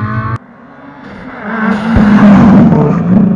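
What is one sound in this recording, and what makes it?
A Subaru rally car roars past close by.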